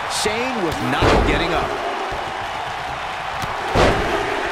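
Bodies slam heavily onto a wrestling ring mat with dull thuds.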